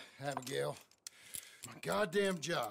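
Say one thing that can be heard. A revolver clicks as its cylinder turns.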